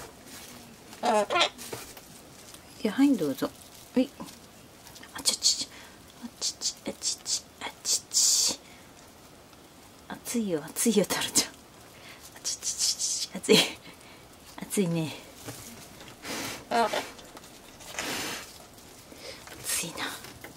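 A cockatoo squawks and chatters close by.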